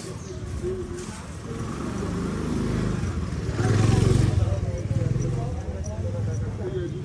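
A motor scooter engine hums as the scooter rides past.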